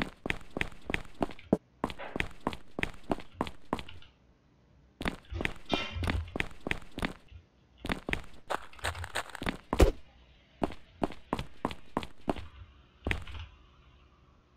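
Quick footsteps run across hard ground.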